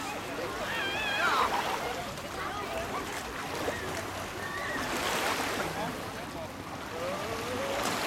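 Children shout and call out nearby outdoors.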